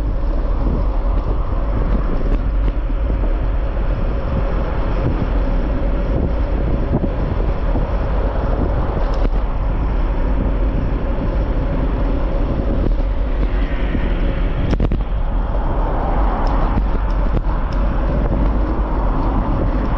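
Cars drive past on a nearby road with a steady rushing hum.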